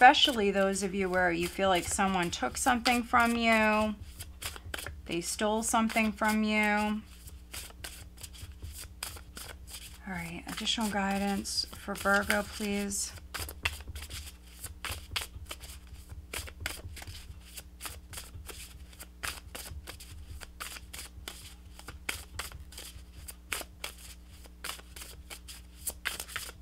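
Playing cards riffle and flap as a deck is shuffled by hand.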